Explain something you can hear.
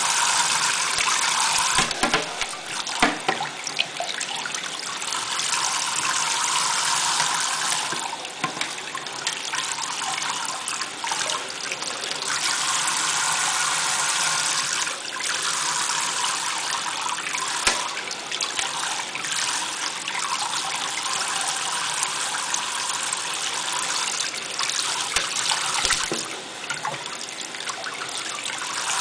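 Water from a tap sprays and splashes steadily into a metal sink.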